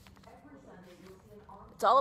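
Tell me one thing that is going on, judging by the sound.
Paper rustles in hands.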